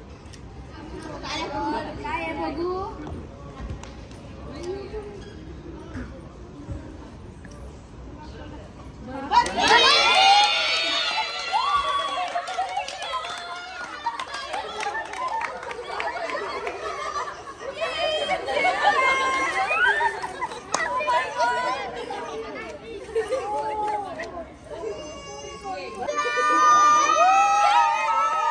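Women talk and cheer excitedly close by.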